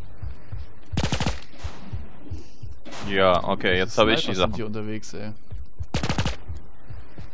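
Gunfire cracks in short rapid bursts.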